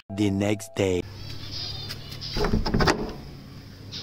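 A metal door latch scrapes and clanks.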